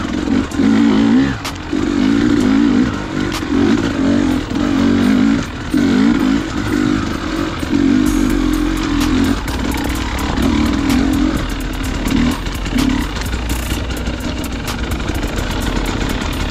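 Tyres crunch over dry leaves and twigs.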